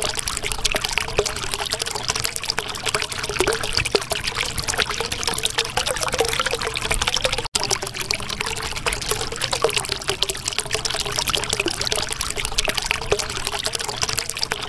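Water bubbles and gurgles steadily.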